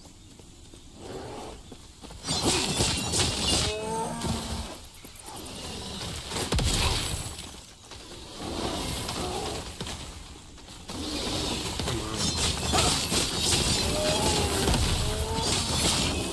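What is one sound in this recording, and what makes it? Game combat effects crash and whoosh loudly.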